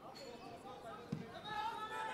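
A player kicks a football with a dull thud.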